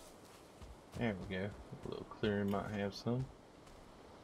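A middle-aged man speaks briefly and calmly into a close microphone.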